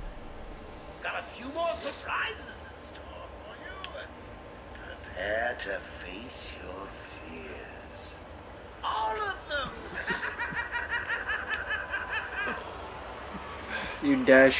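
A man talks casually through a microphone.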